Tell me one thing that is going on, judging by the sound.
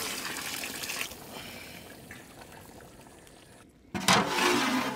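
Stew bubbles and simmers in a pot.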